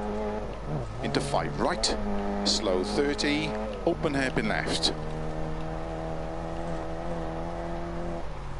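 A car engine drones steadily at high revs.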